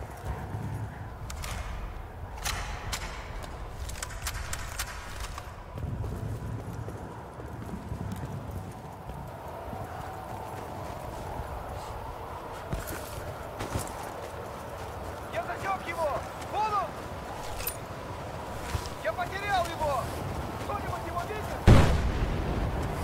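Wind howls steadily in a snowstorm.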